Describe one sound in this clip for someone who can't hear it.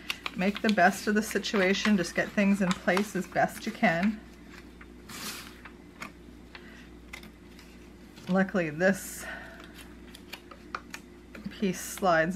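A thin metal clip clicks against card.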